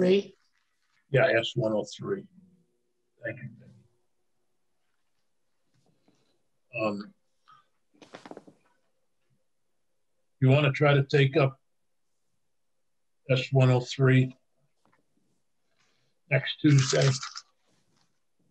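An elderly man speaks calmly in short phrases over an online call.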